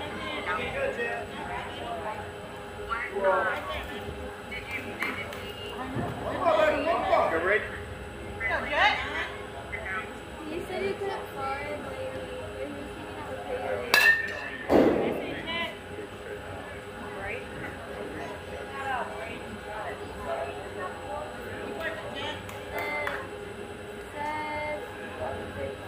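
Young players shout and cheer from a distance outdoors.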